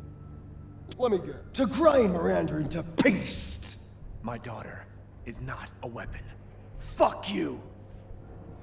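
An elderly man speaks angrily and shouts, close by.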